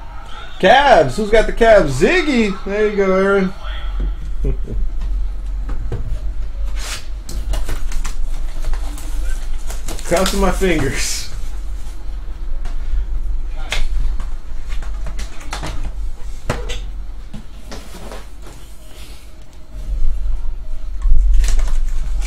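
Hands shuffle cardboard card packs, which rustle and tap.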